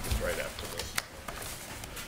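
Paper rustles close to a microphone.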